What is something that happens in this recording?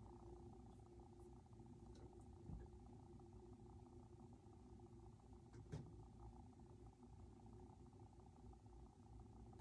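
A ceiling fan hums and whirs steadily.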